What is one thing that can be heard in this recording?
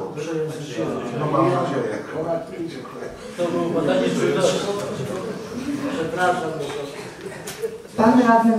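A man speaks steadily through a microphone.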